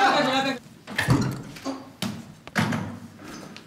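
A door handle clicks and a door swings open.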